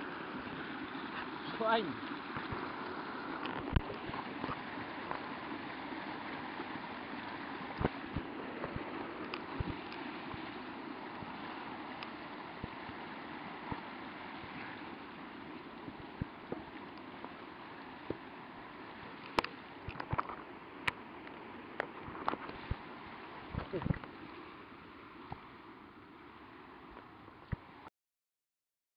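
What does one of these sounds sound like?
A mountain stream rushes and splashes over rocks close by.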